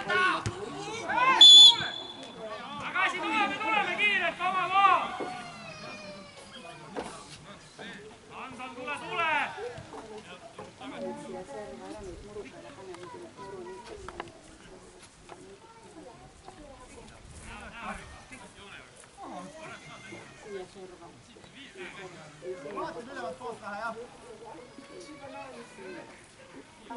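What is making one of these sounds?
Men shout to one another across an open field.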